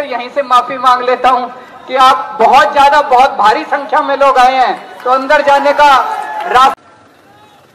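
A man shouts slogans loudly through a loudspeaker.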